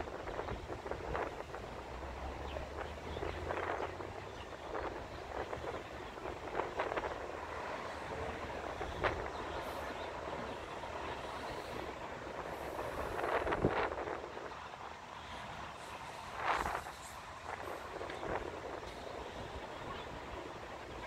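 Traffic hums steadily on a street far below.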